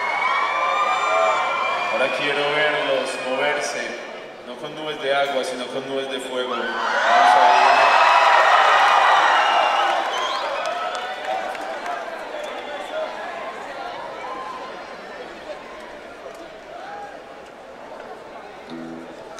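A band plays live through loudspeakers.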